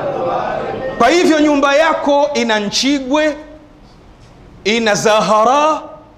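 A man preaches loudly and with passion into a microphone in an echoing hall.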